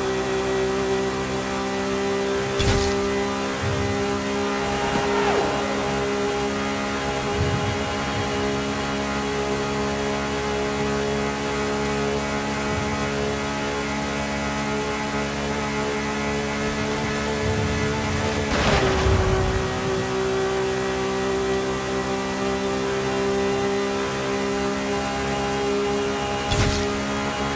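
A high-revving car engine roars steadily at top speed.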